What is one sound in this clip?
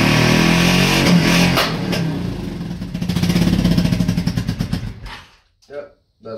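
A motorcycle engine idles loudly, then cuts out.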